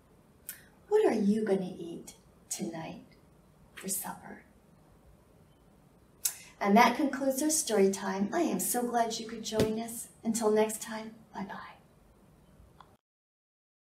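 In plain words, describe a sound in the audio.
A woman speaks calmly and warmly, close to a microphone.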